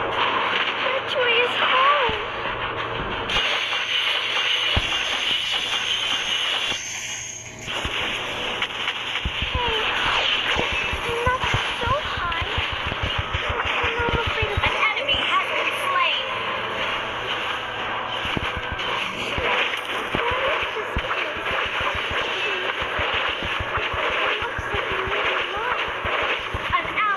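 Game combat effects clash and zap in quick bursts.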